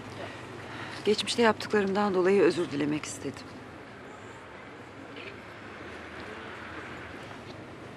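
A middle-aged man speaks sternly nearby.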